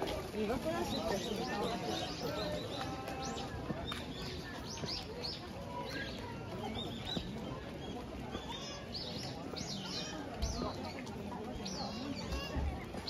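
Men and women chat in a crowd nearby outdoors.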